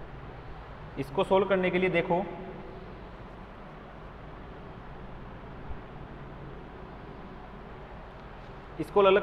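A young man speaks calmly, as if lecturing.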